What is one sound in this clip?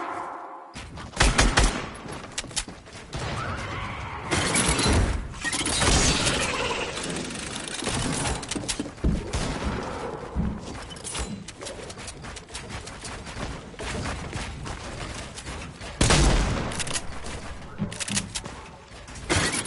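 Wooden and metal panels clatter and thud into place in quick succession.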